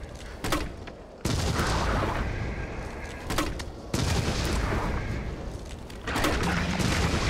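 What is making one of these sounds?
Gunshots fire in loud bursts.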